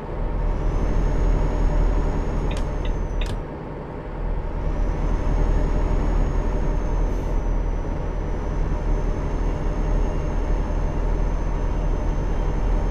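A truck engine drones steadily on a road.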